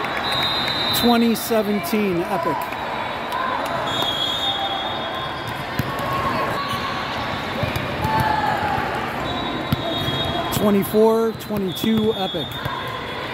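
Young women shout and cheer loudly.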